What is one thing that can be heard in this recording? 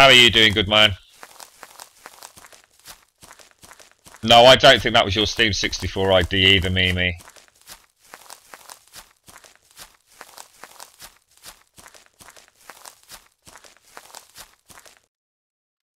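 Footsteps swish and rustle through tall grass.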